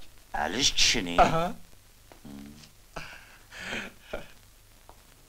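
A man speaks calmly indoors.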